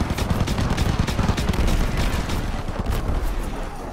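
Aircraft engines drone overhead.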